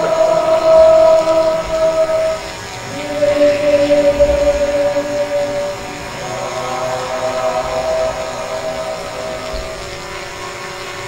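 A choir sings together in long, held notes outdoors.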